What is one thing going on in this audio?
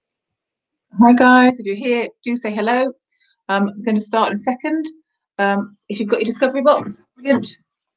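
A woman speaks calmly and close by, heard through a microphone.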